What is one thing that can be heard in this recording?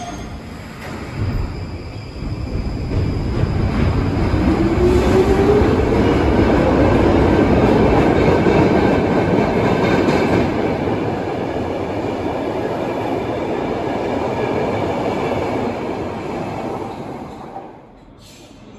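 A train rumbles and clatters loudly out of an echoing station.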